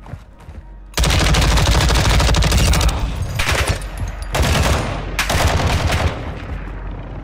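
Rapid gunfire bursts loudly from a rifle.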